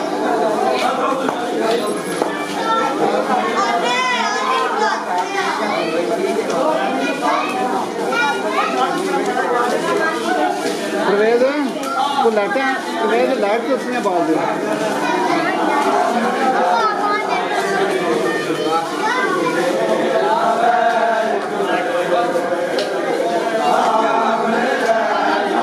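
A crowd of men chants loudly together in an echoing hall.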